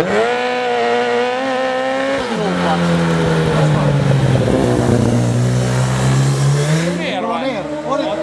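A sidecar motorcycle engine roars loudly, its pitch dropping and rising as it passes through a bend.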